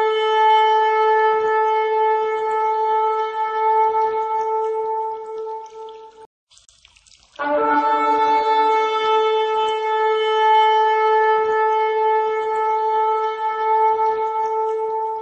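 A ram's horn blows two long, steady, loud blasts with a short pause between them.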